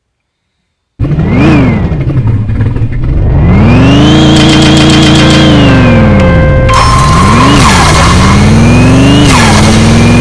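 A car engine revs up and down, roaring loudly as it accelerates through the gears.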